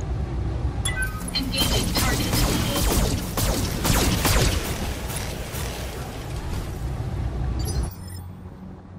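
Laser weapons fire in rapid crackling bursts.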